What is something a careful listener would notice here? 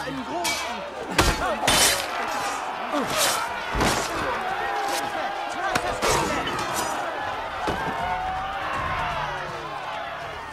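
Men grunt and cry out in a fight.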